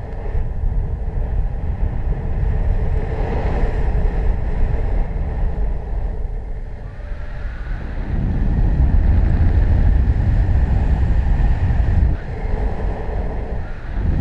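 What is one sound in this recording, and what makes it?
Wind rushes and buffets loudly against a nearby microphone, outdoors high in the air.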